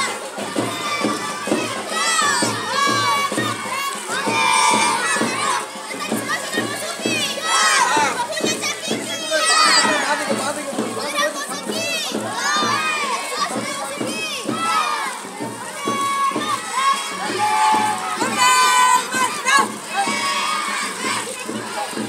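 Children chant and call out together outdoors.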